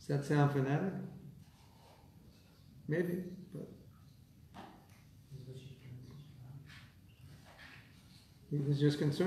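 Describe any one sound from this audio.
A middle-aged man speaks calmly nearby, in short phrases with pauses.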